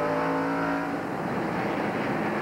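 Several race cars roar past on a track.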